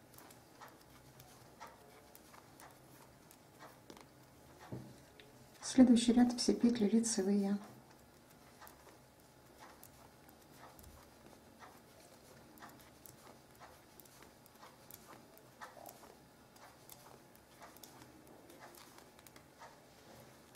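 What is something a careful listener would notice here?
Knitting needles click and tap softly.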